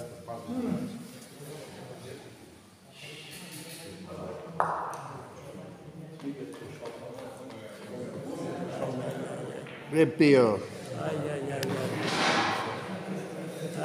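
A ball rolls along a carpeted court.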